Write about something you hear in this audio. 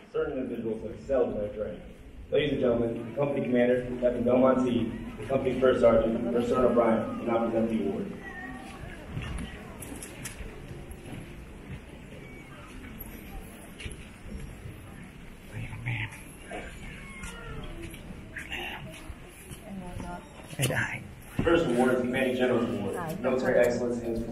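A large crowd chatters and murmurs in an echoing hall.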